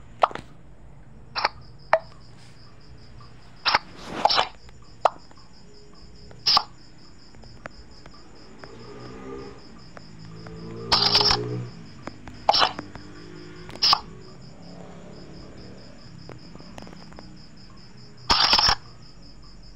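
Cards snap down sharply in a game, now and then.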